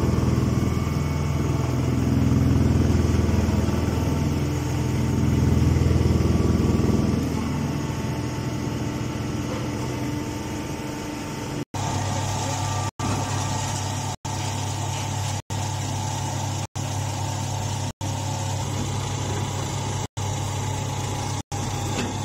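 A baling machine hums and rumbles steadily.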